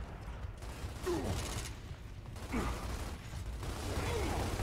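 Gunfire rattles in bursts from a game.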